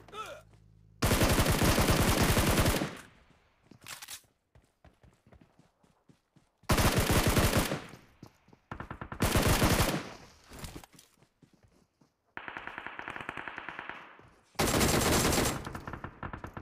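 Automatic gunfire rattles in rapid, loud bursts.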